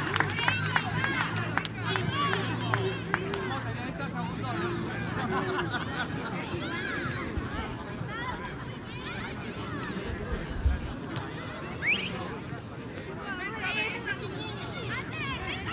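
Young boys shout and cheer excitedly outdoors.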